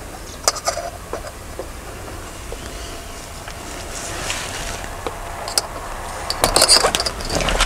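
Plastic clips click as a curtain is fastened.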